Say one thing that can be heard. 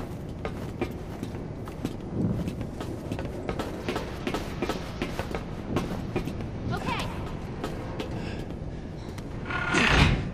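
Footsteps clang on a metal floor.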